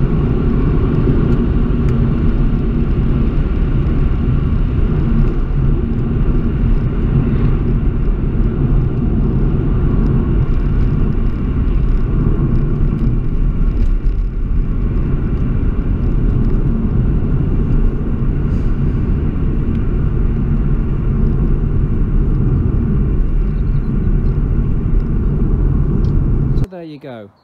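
A car engine hums steadily underneath.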